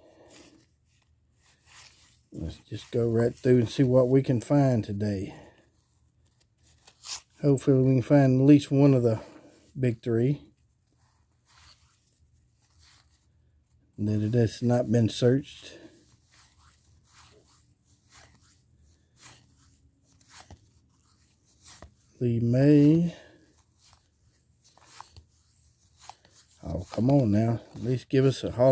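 Paper cards rustle and slide against each other as they are flipped by hand.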